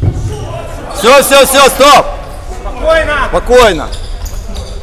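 Spectators chant loudly in rhythm in an echoing hall.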